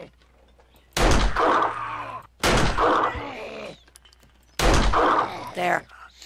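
A pistol fires several loud shots in a row.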